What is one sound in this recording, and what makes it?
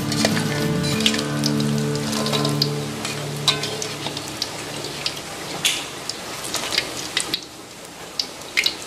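A metal slotted spoon scrapes and clinks against a metal wok.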